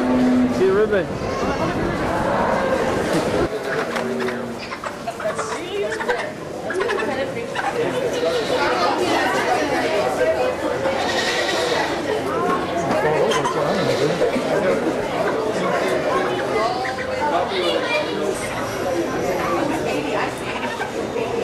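A crowd of people chatter all around in a large echoing hall.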